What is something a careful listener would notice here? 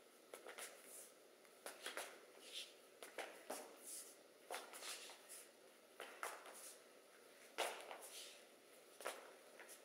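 Sneakers thump and squeak on a hard floor.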